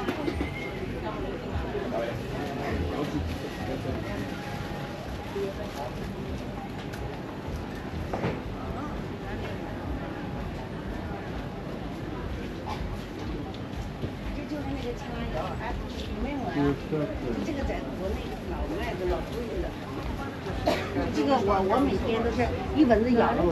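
Footsteps shuffle along a hard floor.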